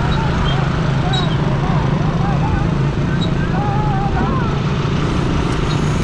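A motor scooter's engine hums nearby.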